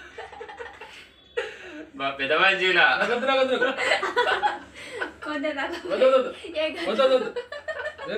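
A man laughs nearby.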